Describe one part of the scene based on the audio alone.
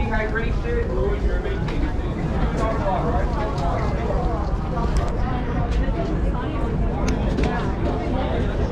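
Voices of people in a crowd chatter nearby outdoors.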